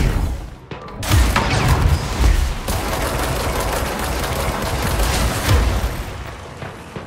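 A powerful blast roars and crackles.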